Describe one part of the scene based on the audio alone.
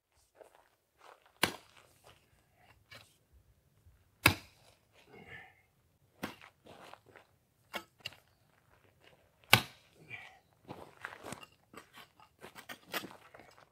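A metal bar strikes hard ground in sharp thuds.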